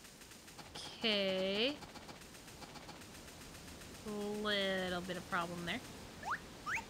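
A young woman talks close to a microphone, with animated, drawn-out exclamations.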